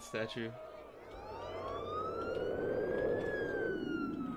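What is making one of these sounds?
A police siren wails and rises.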